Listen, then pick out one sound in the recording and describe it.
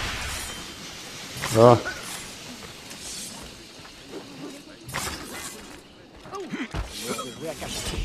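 Swords clash and blows land during a fight.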